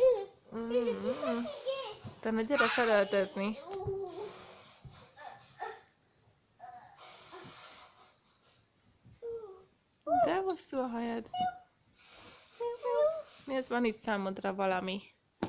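A young girl talks and squeals playfully close by.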